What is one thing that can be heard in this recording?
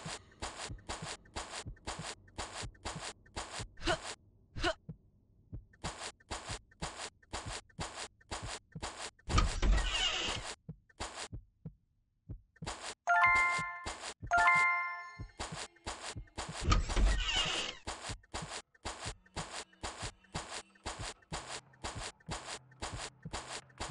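Footsteps thud quickly and evenly on the ground.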